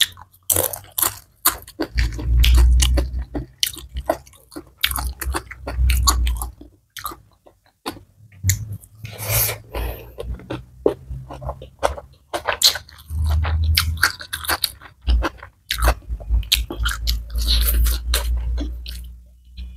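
Crisp food crunches and crackles as fingers pick through it close to a microphone.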